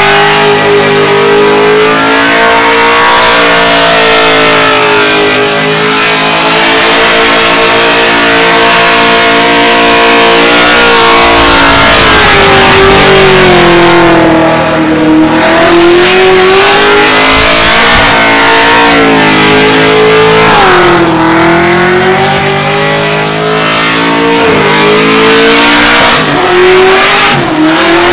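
Tyres screech on tarmac during a burnout.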